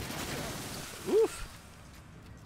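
A creature screeches as it is shot.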